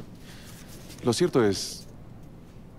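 A man speaks a few words calmly and close by.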